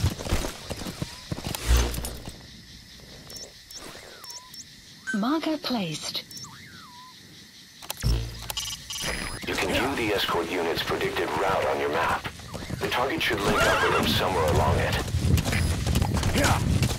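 A horse gallops, its hooves thudding on the ground.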